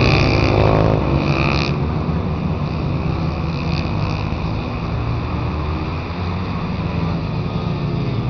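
Engines hum in the distance as small vehicles drive along a track.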